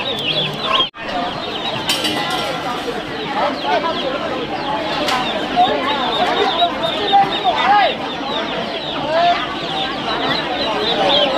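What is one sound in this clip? A young woman talks with a middle-aged woman up close.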